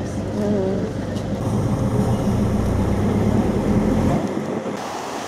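A vehicle engine hums steadily from inside a car.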